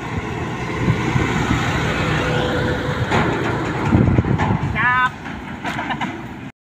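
A heavy truck engine rumbles loudly as the truck drives past and moves away.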